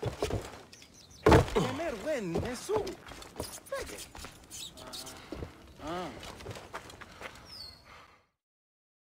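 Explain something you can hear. Footsteps thud quickly on wooden boards and dirt.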